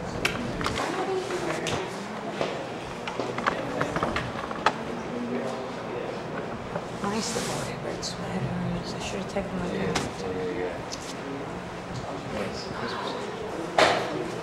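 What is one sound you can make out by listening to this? A man clicks and rattles small handheld percussion.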